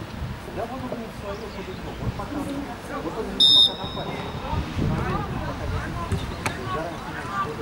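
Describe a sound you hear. Football players shout to each other in the distance.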